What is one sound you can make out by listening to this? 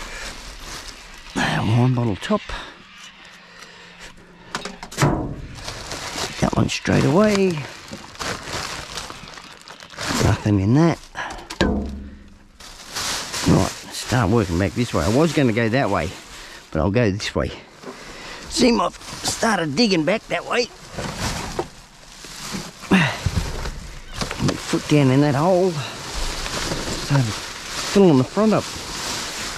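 Plastic bags rustle and crinkle as hands dig through rubbish.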